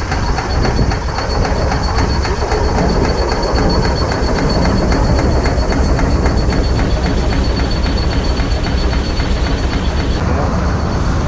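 A steam engine chuffs rapidly and steadily up close.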